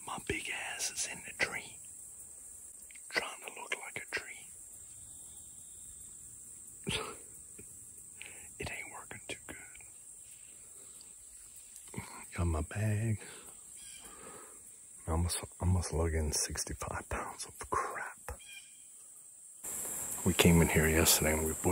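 A middle-aged man talks close up, quietly and with animation, outdoors.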